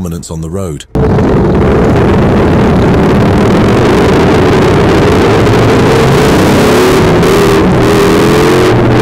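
Motorcycle engines rumble nearby.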